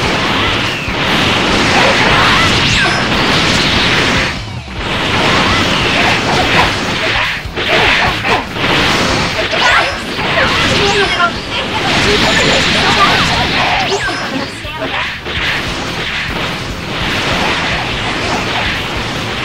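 Energy blasts and punches crash and whoosh in a fast fight.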